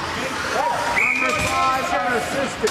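A referee's whistle blows.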